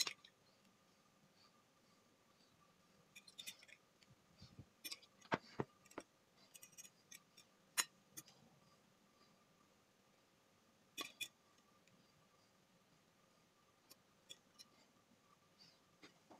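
Small soft pieces click and rattle onto a plate.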